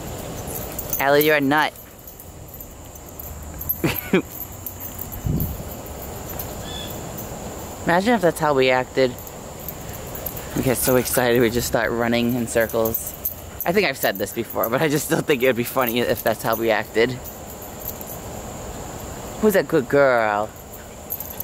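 A dog howls and yowls loudly in short bursts outdoors.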